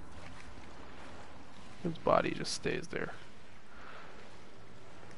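Footsteps slosh through shallow water.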